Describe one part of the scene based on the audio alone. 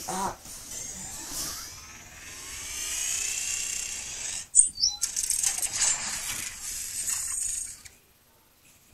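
Sound effects play through a phone's small loudspeaker.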